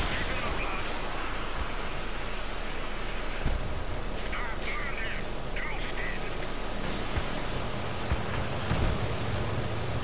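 Wheels splash through water.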